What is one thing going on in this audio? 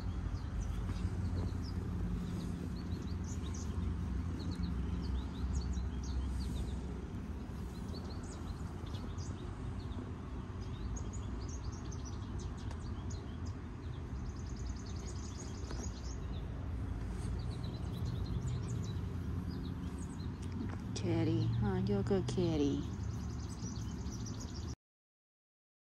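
A hand strokes a cat's fur with a soft rustle.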